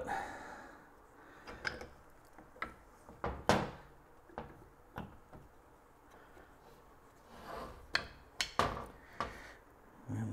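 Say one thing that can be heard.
Small parts click and clatter on a metal bench.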